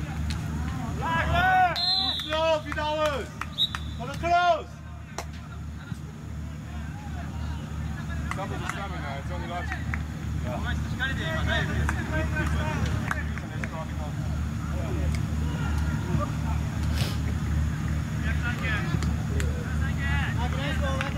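Young men shout across an open playing field at a distance.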